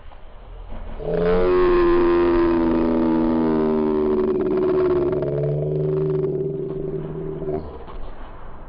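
A young man shouts excitedly into a microphone.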